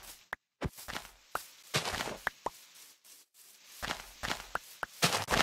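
Footsteps rustle on grass in quick, uneven steps.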